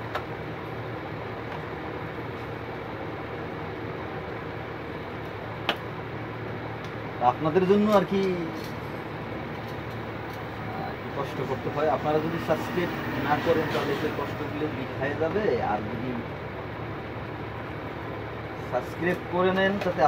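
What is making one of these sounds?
Small plastic parts click and rattle as they are handled and fitted together.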